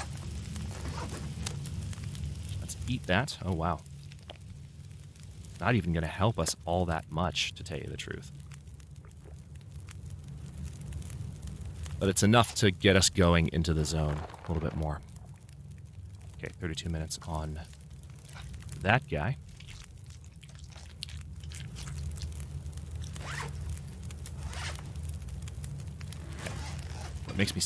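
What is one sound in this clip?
A campfire crackles and hisses steadily.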